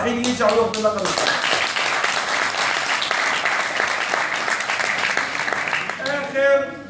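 A crowd claps.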